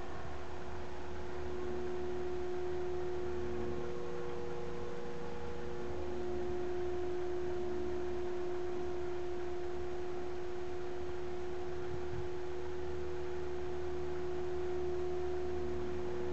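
A model helicopter's engine whines steadily overhead with a high buzzing drone.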